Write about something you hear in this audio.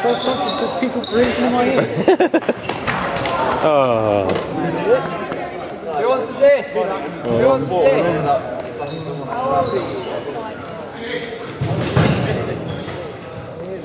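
Young people talk and call out to each other in a large echoing hall.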